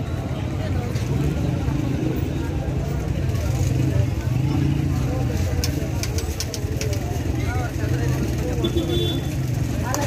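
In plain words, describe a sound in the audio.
Spices rattle as a vendor shakes them from a bottle.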